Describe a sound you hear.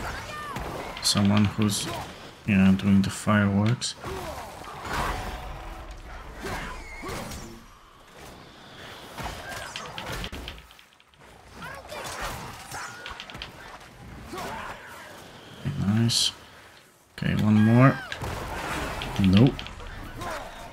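A large beast snarls and growls.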